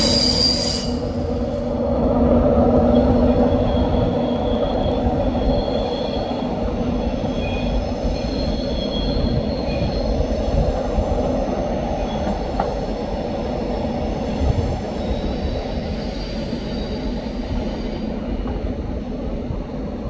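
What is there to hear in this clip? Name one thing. A locomotive engine hums steadily as a train approaches slowly.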